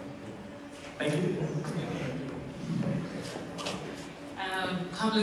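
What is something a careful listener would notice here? A man speaks into a microphone, amplified through loudspeakers in a large echoing hall.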